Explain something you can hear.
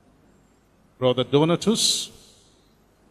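An older man speaks briefly into a microphone.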